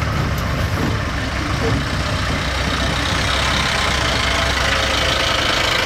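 Another vehicle's engine approaches and passes close by.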